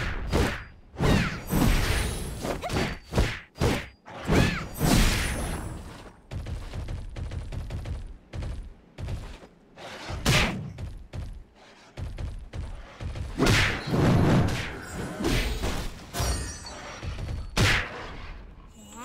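Sword blows strike and whoosh in quick succession.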